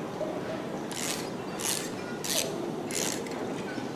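A music box crank clicks as it is wound.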